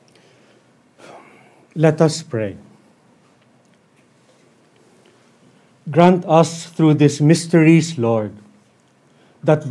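A man speaks slowly and solemnly into a microphone.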